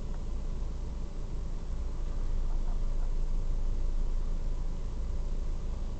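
Another car pulls up close in front and stops.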